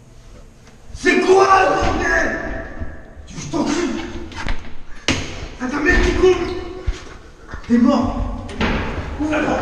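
A man talks with animation, close by and muffled.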